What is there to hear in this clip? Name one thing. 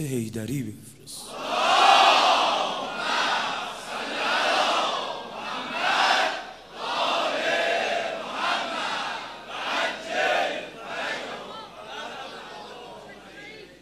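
A man speaks loudly with feeling through a microphone.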